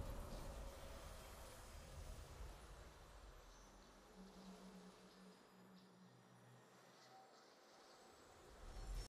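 Triumphant game music plays softly.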